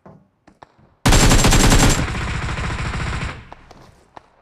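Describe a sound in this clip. A rifle fires in a rapid, loud burst, then keeps firing more softly.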